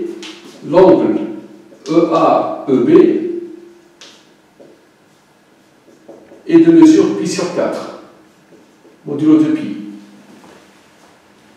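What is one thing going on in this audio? An elderly man speaks calmly in short phrases.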